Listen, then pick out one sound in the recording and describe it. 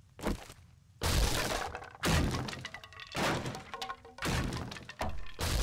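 A chainsaw roars loudly in bursts.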